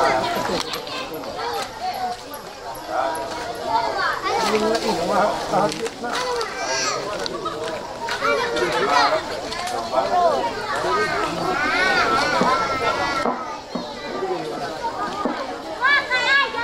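A crowd of men and women chatter loudly close by.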